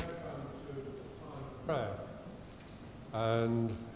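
An elderly man speaks calmly through a microphone.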